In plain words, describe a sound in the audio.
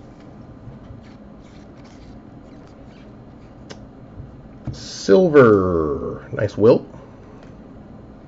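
Trading cards slide and flick against each other in a hand.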